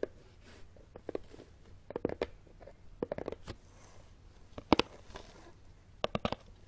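Fingers tap and scratch on a cardboard box close by.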